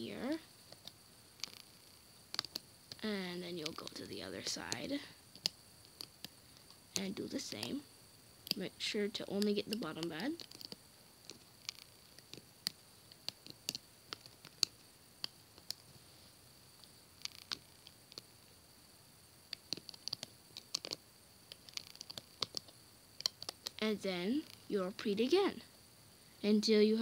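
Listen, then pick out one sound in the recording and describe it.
Small rubber bands snap and click against a plastic loom.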